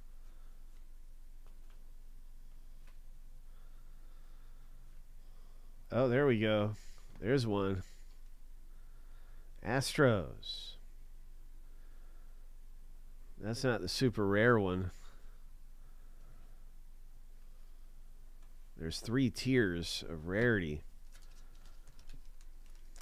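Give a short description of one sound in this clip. Trading cards rustle softly as they are flipped through by hand.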